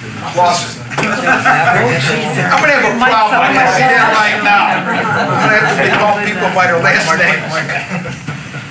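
Several adults chatter and talk over each other nearby.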